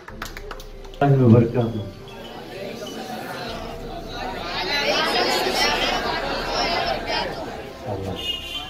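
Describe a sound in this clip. A man speaks with animation into a microphone, heard over loudspeakers.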